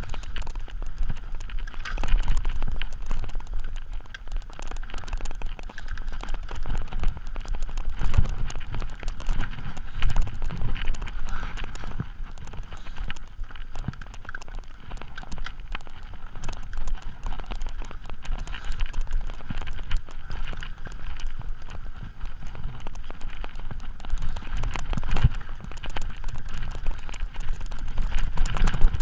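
Bicycle tyres roll and crunch over a rough dirt trail.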